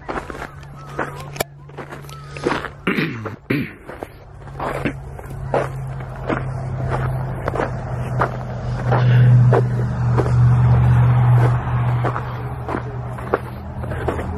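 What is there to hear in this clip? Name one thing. Footsteps crunch through snow and dry grass.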